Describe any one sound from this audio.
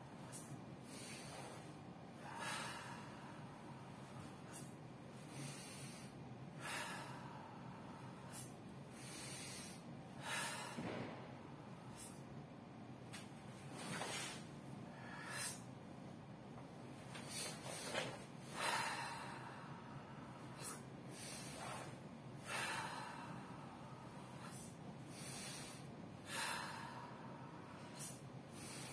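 Two men breathe in and out forcefully, hissing in time with slow, tense movements.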